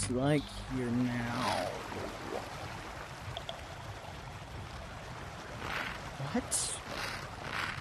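Water trickles down a small waterfall.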